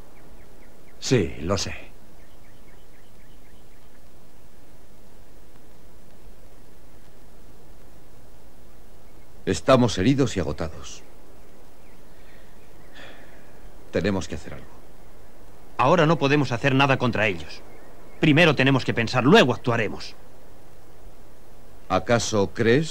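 Young men talk in turn, in short, firm exchanges.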